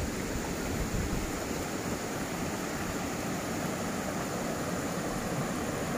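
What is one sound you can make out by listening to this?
A shallow stream trickles and babbles over rocks.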